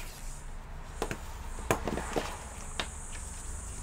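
Small plastic parts click and tap against a laptop case.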